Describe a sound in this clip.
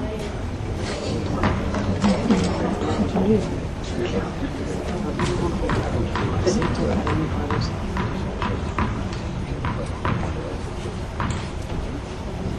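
A tennis ball bounces on the court with sharp taps.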